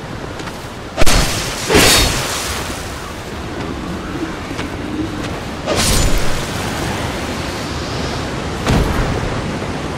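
Heavy weapon blows land with sharp, ringing impacts.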